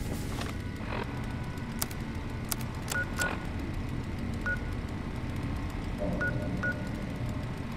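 Short electronic beeps and clicks sound as a handheld device's menus change.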